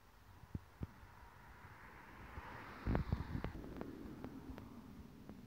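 A car drives past on a nearby road.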